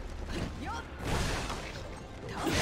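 A burst of energy blasts with a loud whoosh.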